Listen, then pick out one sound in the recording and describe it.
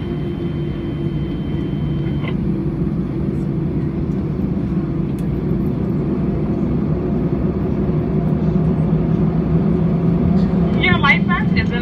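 A jet engine hums steadily from close by.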